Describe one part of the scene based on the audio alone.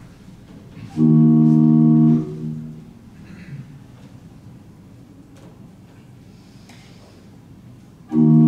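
A group of men sing a short, steady chord together.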